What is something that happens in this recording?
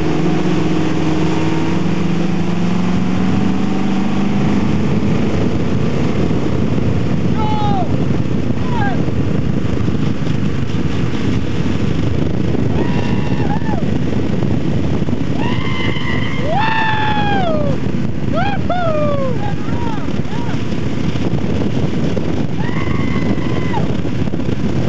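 Water sprays and rushes loudly.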